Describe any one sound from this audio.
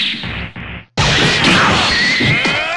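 An energy blast explodes with a loud crackling roar.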